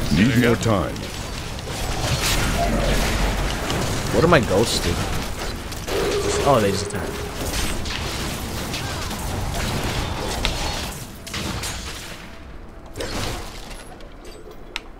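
Spell effects crackle and whoosh during a game fight.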